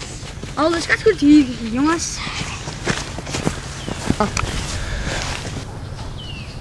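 Footsteps crunch through dry leaves close by.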